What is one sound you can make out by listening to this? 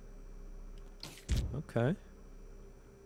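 A menu page flips over with a short soft sound.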